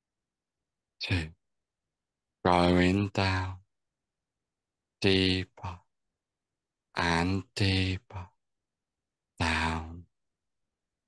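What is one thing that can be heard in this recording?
A young man speaks calmly in short phrases through an online call.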